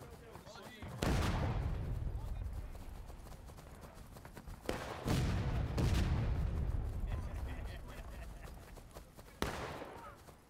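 Rifle shots boom and roll away across open ground.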